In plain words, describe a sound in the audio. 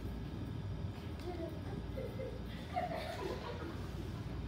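Children chatter quietly in the background.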